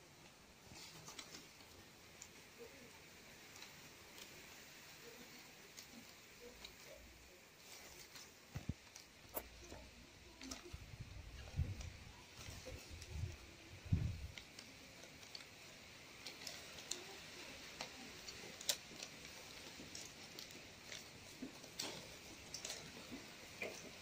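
Stiff palm leaves rustle and crackle as hands weave them.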